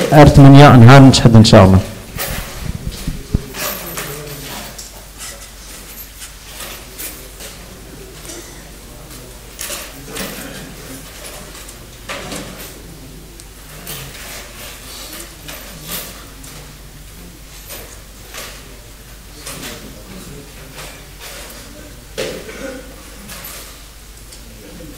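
A large crowd rustles and shuffles quietly.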